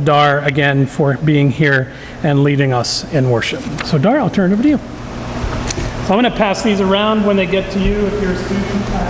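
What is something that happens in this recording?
A man speaks over a microphone in a large echoing hall.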